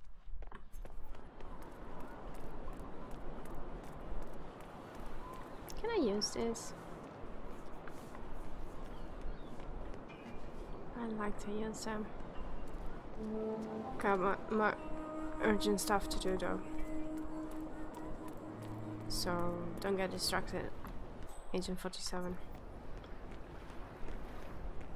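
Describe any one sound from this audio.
Footsteps tap steadily on cobblestones.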